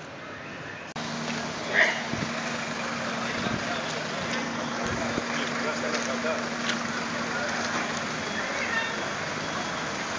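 A fire engine's motor hums steadily nearby.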